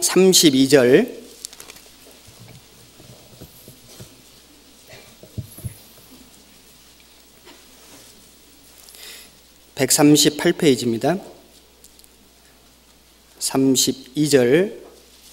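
A man speaks slowly and calmly into a microphone, in bursts with long pauses, in a large echoing hall.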